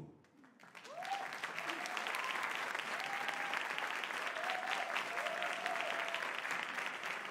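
People in an audience cheer and whoop.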